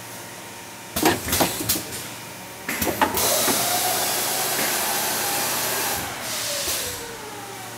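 Pneumatic machine parts clack and hiss in short bursts.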